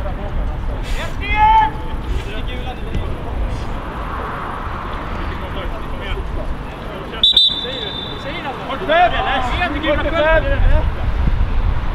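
Players shout to each other across an open field, distant.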